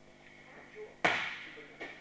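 A body thuds heavily onto a padded mat in an echoing room.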